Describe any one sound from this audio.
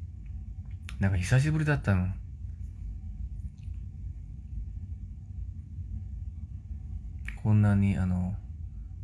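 A young man speaks softly and briefly, close to a phone's microphone.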